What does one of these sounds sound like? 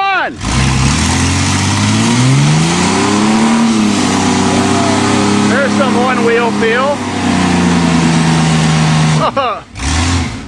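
A truck engine revs up and roars loudly and steadily, then drops off.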